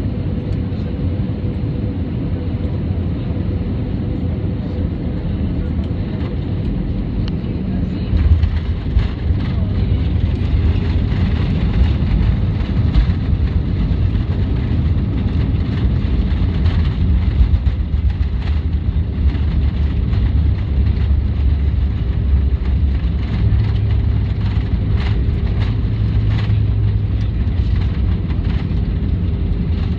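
Jet engines roar loudly from inside a cabin.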